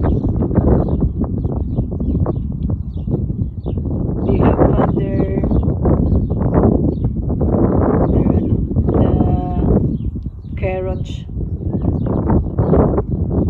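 Wind blows in gusts outdoors.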